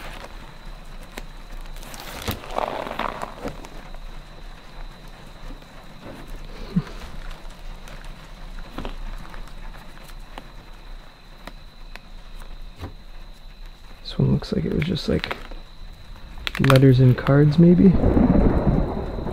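Stiff album pages rustle and flip as a hand turns them.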